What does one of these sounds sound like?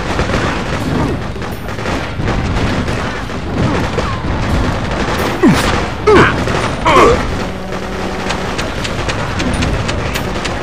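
Gunfire cracks in short bursts.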